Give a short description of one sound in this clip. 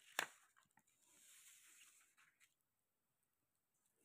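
A sheet of paper rustles as it is moved.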